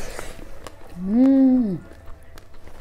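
A young man hums with pleasure while chewing.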